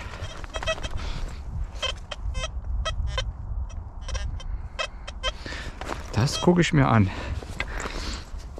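A hand trowel scrapes and digs into dry soil.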